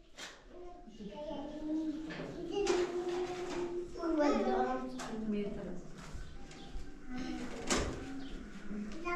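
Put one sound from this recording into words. Young girls talk and call out nearby.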